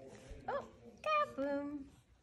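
A baby squeals and babbles.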